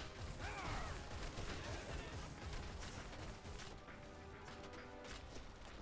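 Heavy footsteps crunch on dirt.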